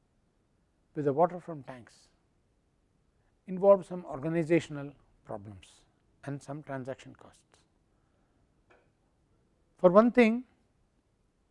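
An elderly man speaks calmly through a clip-on microphone, in short phrases with pauses.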